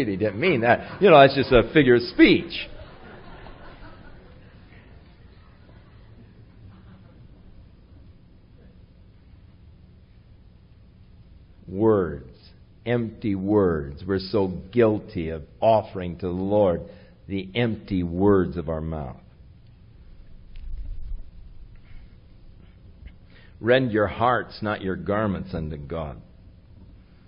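An elderly man speaks calmly into a microphone, with long pauses.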